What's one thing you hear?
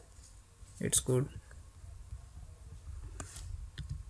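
A computer mouse clicks once.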